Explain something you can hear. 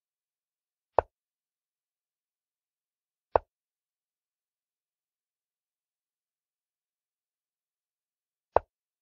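A computer chess program plays a short click as each piece is moved.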